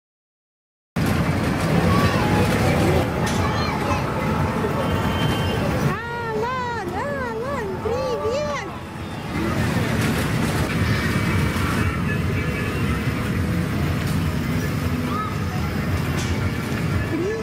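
A small electric ride train rumbles along a track.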